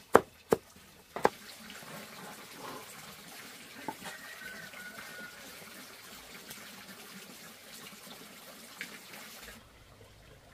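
Chopped cabbage rustles as a man gathers it by hand.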